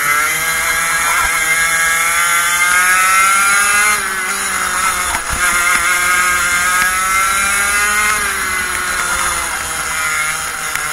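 A kart engine buzzes loudly close by, revving up on the straights and dropping off into the corners.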